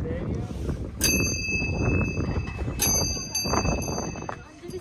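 A bell on a prayer wheel rings out clearly.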